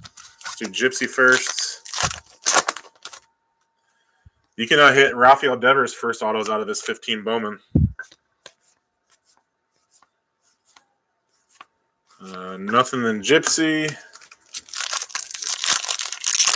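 Plastic foil wrapper crinkles and tears open.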